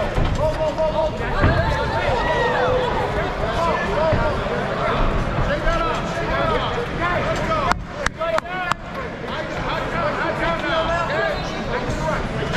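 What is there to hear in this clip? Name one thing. A crowd cheers and shouts all around in a large echoing hall.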